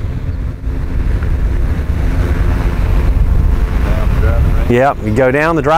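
Wind buffets the microphone outdoors with a low, steady rumble.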